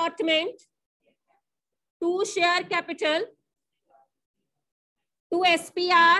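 A woman speaks clearly and steadily, as if explaining, close by.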